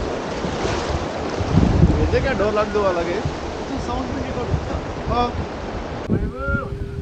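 A river rushes over stones.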